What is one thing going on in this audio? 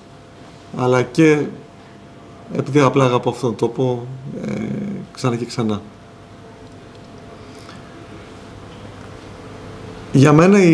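A man speaks calmly into microphones, pausing between phrases.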